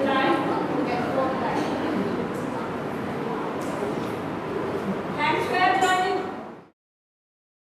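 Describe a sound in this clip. Young children chatter and call out in an echoing room.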